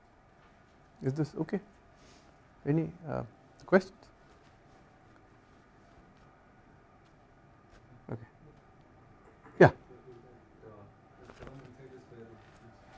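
A man speaks calmly and haltingly into a close microphone.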